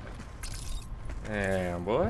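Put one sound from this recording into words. A gun fires in a video game.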